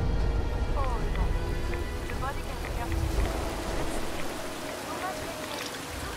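Water pours and splashes from a small waterfall.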